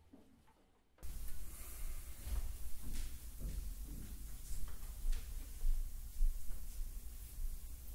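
A small chamber ensemble plays strings and woodwinds together.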